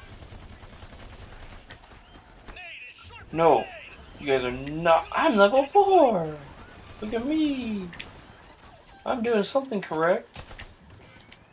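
Rapid gunfire crackles from a game.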